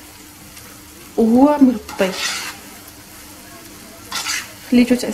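A spoon scrapes and stirs food in a metal pan.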